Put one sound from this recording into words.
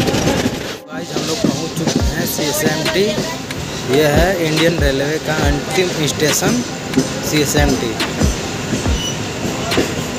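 A train pulls into a station.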